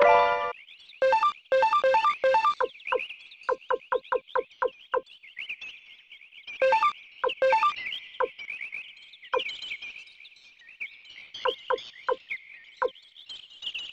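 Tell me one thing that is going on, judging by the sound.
Menu cursor beeps tick quickly, one after another.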